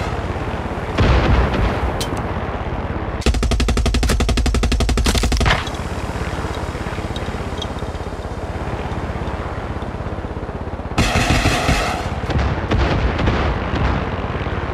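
Explosions boom over water.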